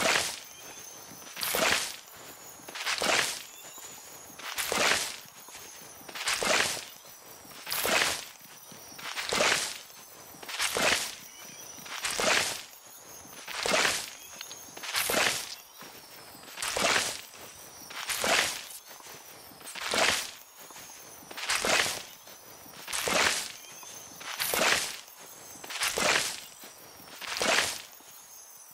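A soft sparkling whoosh sounds over and over at a steady pace.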